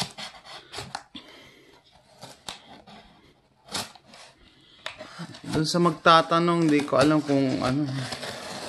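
A knife scrapes and slices through packing tape on a cardboard box.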